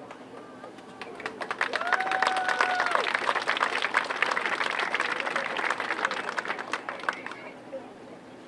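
A marching band plays outdoors.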